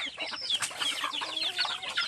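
Chickens cluck outdoors.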